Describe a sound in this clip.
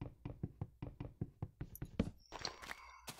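A wooden block is struck with rapid, steady knocks.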